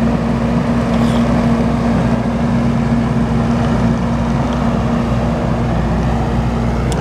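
A chainsaw engine idles steadily up close.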